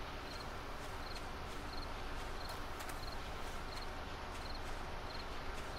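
Footsteps rustle through dry grass at a steady pace.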